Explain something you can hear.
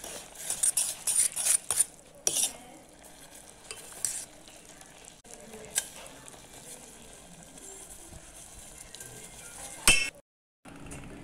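Noodles bubble and sizzle in a pot.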